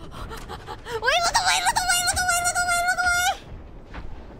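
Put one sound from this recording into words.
A young woman squeals loudly into a microphone.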